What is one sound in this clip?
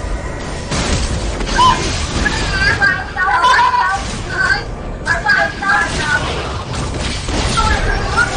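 Video game combat effects clash and burst in quick succession.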